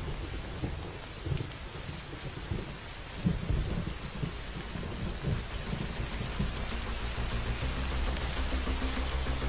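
Rain falls steadily on wet ground outdoors.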